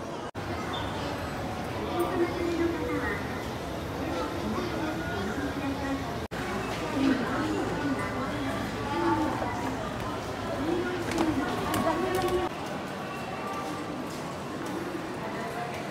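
Many people chatter in a busy, echoing indoor space.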